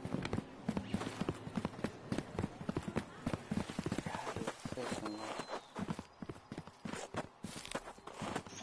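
Quick footsteps run over stone paving.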